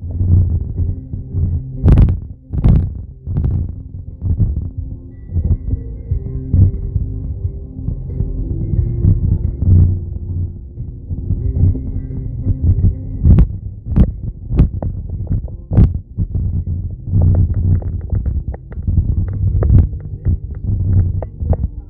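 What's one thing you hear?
Wind and road noise rumble against the car.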